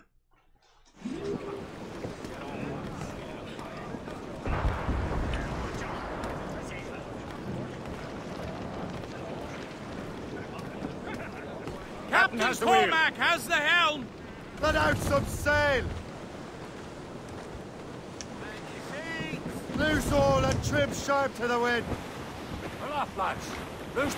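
Wind blows steadily over a stormy sea.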